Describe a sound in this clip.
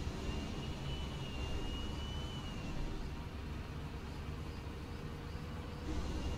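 A tank engine rumbles steadily at idle.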